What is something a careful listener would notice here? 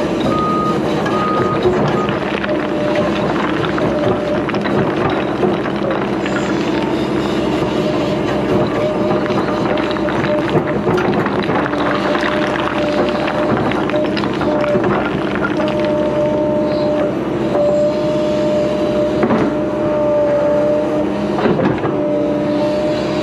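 A diesel excavator engine rumbles and whines steadily close by.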